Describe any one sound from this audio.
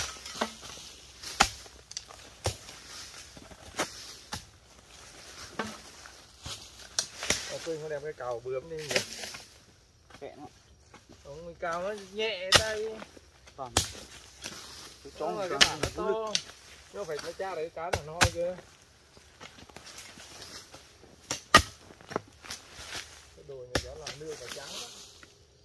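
Hoes thud and scrape into dry dirt.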